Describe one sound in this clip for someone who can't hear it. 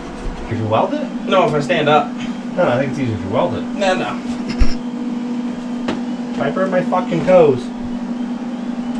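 A second man talks nearby.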